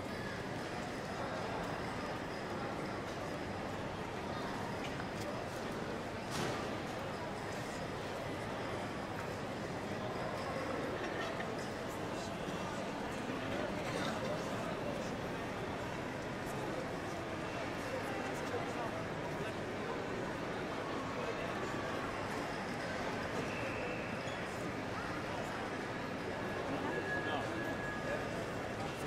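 A crowd murmurs in a large echoing hall.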